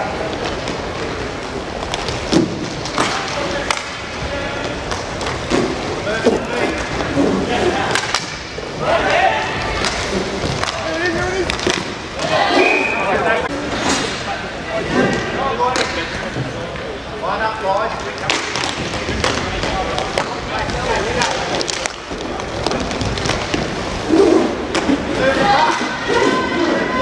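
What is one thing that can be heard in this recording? Skate wheels roll and rumble on the floor.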